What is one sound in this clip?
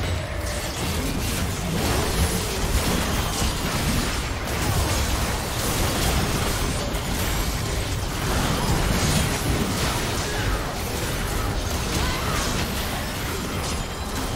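Magic blasts and clashing effects burst in a fast game battle.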